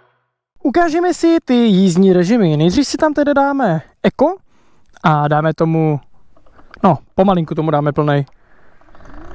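A man speaks with animation, close by.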